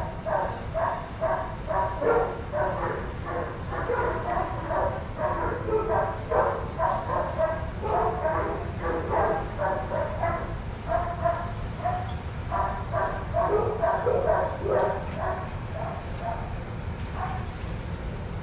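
Dogs bark repeatedly nearby.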